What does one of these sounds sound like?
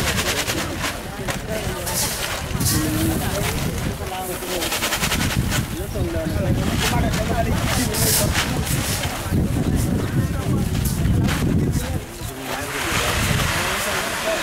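Grain pours and rustles as sacks and buckets are filled.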